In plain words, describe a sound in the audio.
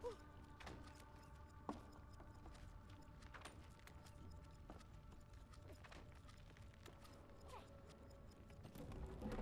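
Wooden debris clatters and cracks as it flies about.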